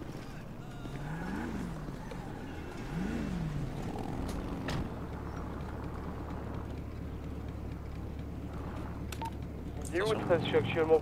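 A motorcycle engine revs and idles with a low hum.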